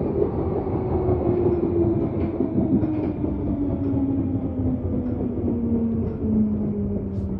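A train's motor whines, slowly falling in pitch as the train slows down.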